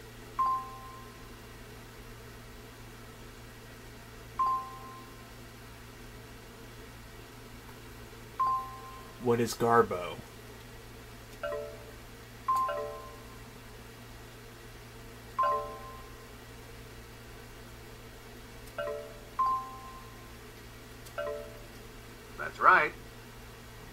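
Short electronic chimes beep from a game as letters are picked.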